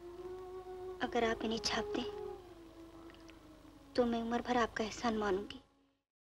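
A young woman speaks softly and pleadingly, close by.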